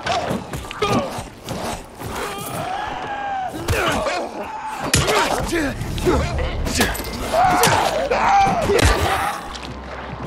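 Heavy melee blows strike a zombie with wet, meaty thuds.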